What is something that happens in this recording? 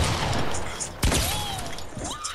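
A hit chimes in a game.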